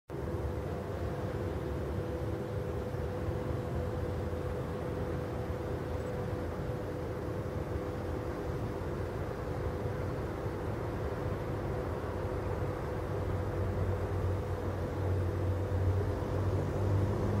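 A train engine rumbles in the distance and slowly grows louder.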